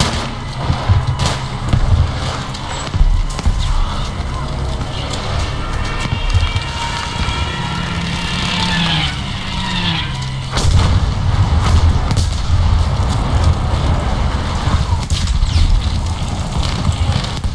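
Explosions rumble and boom around the battlefield.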